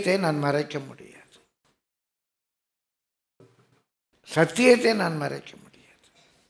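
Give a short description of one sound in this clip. An elderly man speaks calmly into a headset microphone, with pauses.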